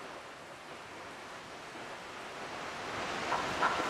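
A waterfall rushes and roars nearby.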